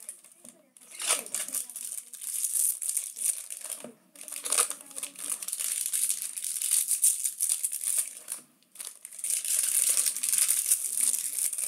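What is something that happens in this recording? Foil wrappers tear open with a crisp rip.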